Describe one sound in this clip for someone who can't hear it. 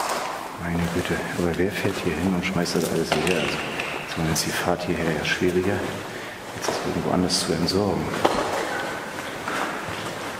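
Footsteps scuff across a gritty concrete floor.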